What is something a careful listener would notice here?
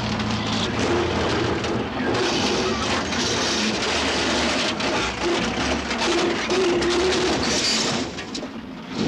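Flames roar and crackle on a burning truck.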